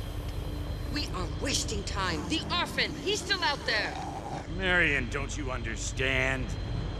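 Zombie-like creatures growl and shriek up close.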